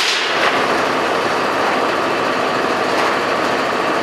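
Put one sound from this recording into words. A loose metal roof sheet scrapes and clatters as it is pulled away.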